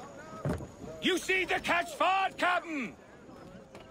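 A man calls out loudly on the deck.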